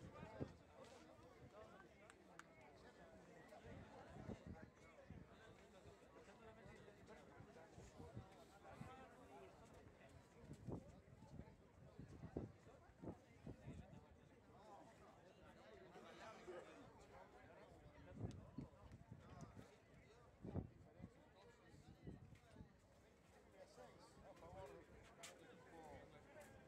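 Distant spectators murmur and call out.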